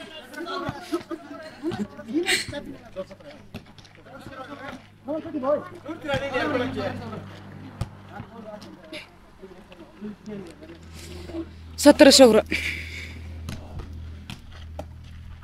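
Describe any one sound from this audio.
Several men shout and call out to each other outdoors.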